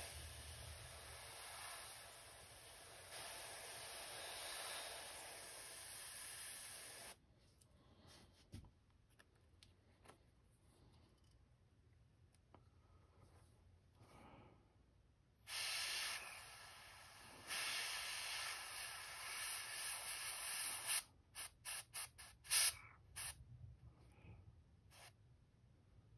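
An airbrush hisses in steady spurts of air, then in short bursts.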